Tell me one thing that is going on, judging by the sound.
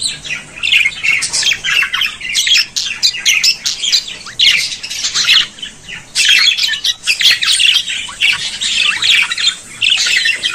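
Budgerigars chirp and warble rapidly and continuously.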